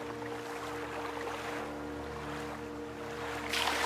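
Leaves rustle close by.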